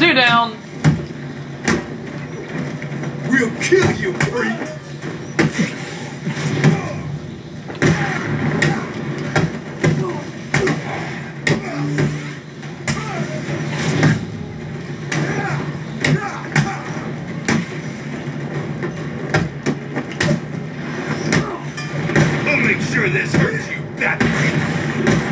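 Punches and kicks thud and crack in a fast fight.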